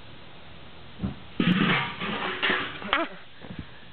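A metal grill lid clatters onto the ground.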